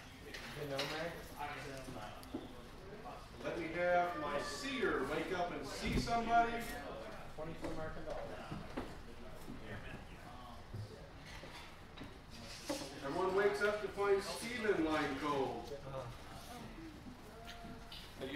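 Several people chat quietly in the background.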